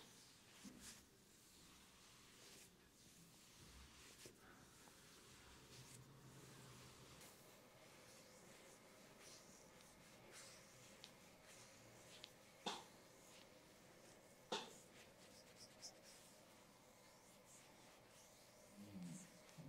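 Hands knead and rub skin on a neck.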